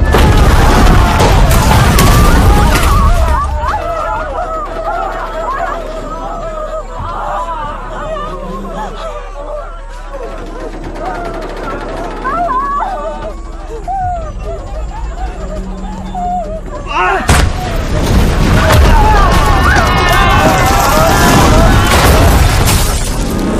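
People scream and shout in panic.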